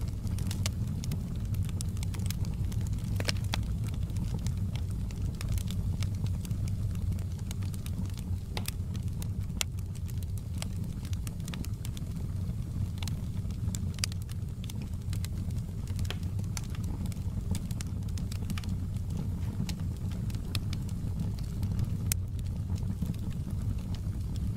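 Flames roar with a low, steady rumble.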